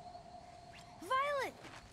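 A child's voice calls out.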